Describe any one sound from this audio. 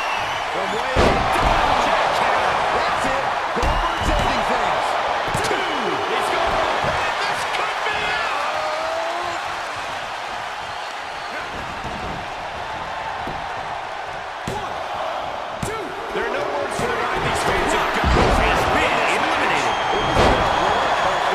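Heavy bodies thud onto a wrestling mat.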